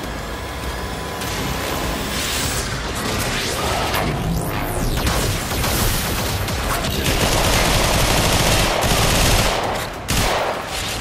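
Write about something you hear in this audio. Game weapons fire and explosions boom in rapid bursts.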